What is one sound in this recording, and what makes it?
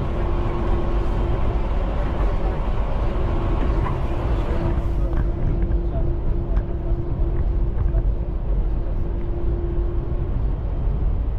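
A motor hums with a steady whine inside the train.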